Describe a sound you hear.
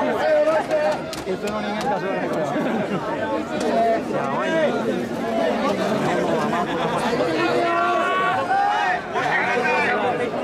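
A crowd of men chants and shouts loudly close by.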